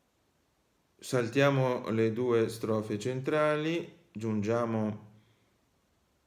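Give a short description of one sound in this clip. A young man reads aloud calmly, close by.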